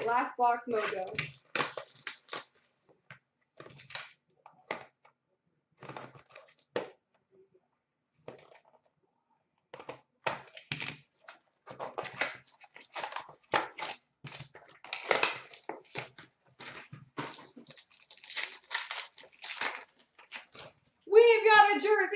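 Foil card packs crinkle and rustle as hands sort through them.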